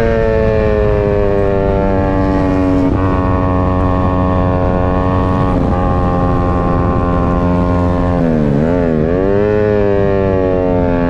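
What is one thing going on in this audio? A 150cc sport motorcycle engine screams at high revs.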